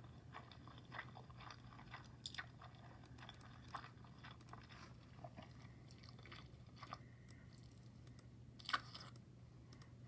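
A person chews and slurps noodles close to a microphone.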